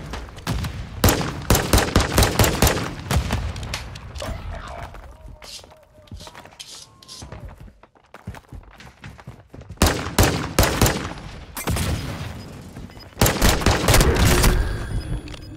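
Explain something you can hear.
A pistol fires rapid shots.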